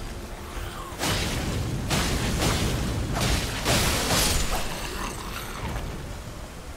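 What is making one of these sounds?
Heavy sword blows and loud clashing bursts of combat ring out.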